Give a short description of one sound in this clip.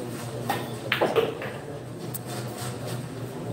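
Pool balls clack together and roll across the table.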